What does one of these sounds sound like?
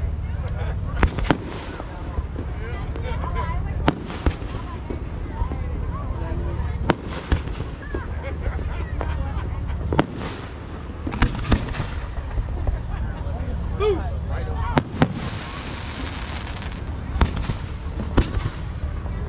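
Fireworks burst with sharp, loud bangs.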